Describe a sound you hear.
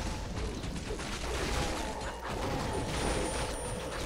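Swords clash and strike in a battle.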